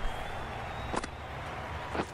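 A bat knocks a ball once.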